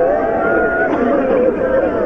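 A group of men sing together in low, mournful voices.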